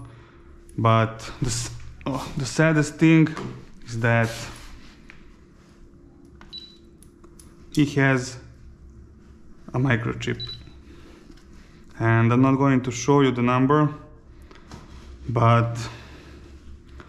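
A man talks nearby in short bursts.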